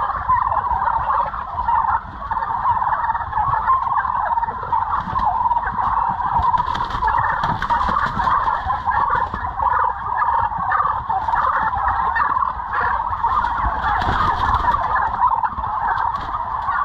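A large flock of turkeys gobbles and chatters all around in a big echoing shed.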